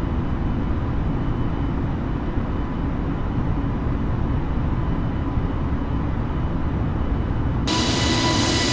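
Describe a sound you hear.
A muffled engine hum drones steadily from inside a cockpit.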